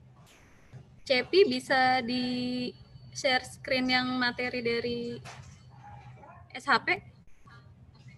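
A woman speaks through an online call.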